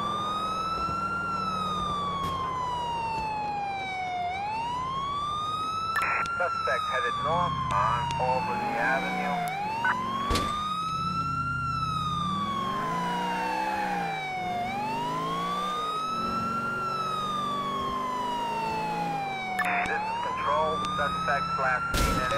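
A siren wails, rising and falling slowly.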